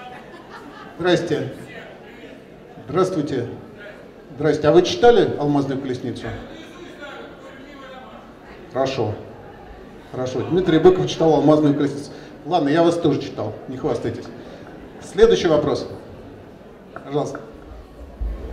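An older man speaks calmly into a microphone, heard through a loudspeaker in a room with some echo.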